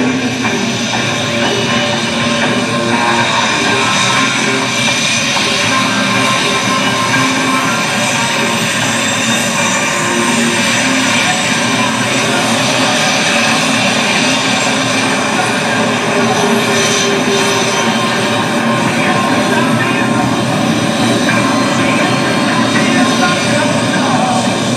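A jet engine roars loudly and steadily nearby.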